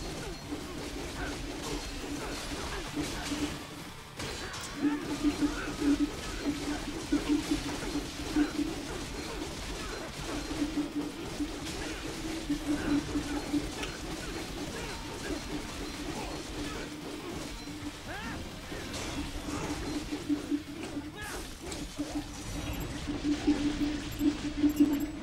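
A sword slashes and clangs against metal in quick strikes.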